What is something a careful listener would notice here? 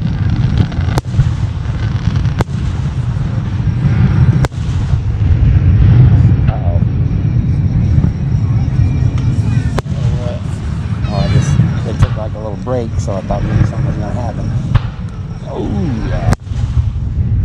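Fireworks burst with sharp booms in the distance.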